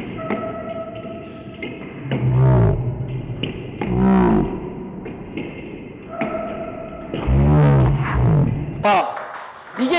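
A ping-pong ball clicks sharply off paddles and a table.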